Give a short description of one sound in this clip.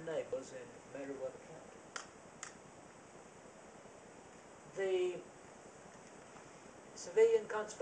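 An elderly man speaks calmly with long pauses.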